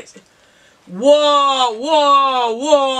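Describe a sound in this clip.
A teenage boy makes a long drawn-out vocal sound.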